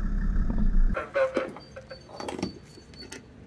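A fuel nozzle clicks into a car's filler neck.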